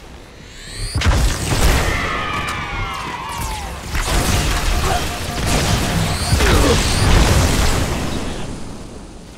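Energy blasts explode with loud booms.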